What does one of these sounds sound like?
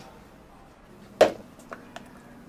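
Plastic cups knock down on a hard counter.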